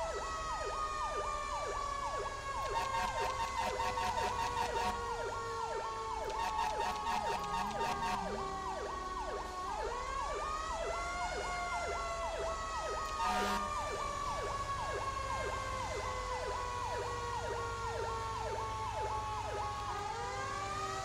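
An emergency siren wails in a fast, steady yelp.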